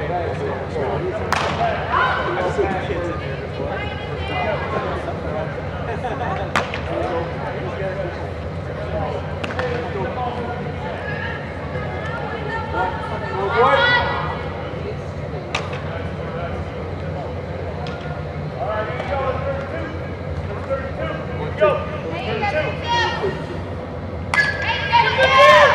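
Young women and men call out to each other from across a large echoing indoor hall.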